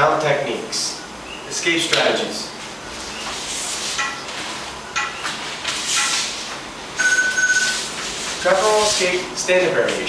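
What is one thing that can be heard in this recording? A man speaks calmly to the room.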